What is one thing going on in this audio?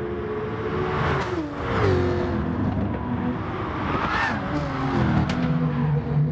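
Engines of passing race cars sweep by loudly.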